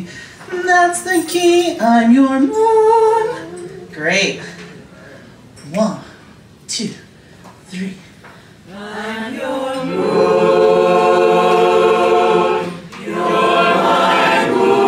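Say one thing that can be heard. A young woman sings through a microphone with animation.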